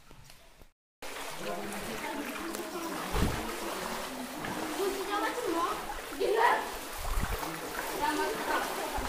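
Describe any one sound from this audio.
Water rushes steadily over rocks.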